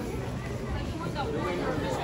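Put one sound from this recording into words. A woman talks on a phone close by.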